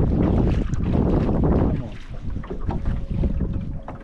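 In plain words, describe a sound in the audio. A fishing reel clicks and whirs as line is reeled in.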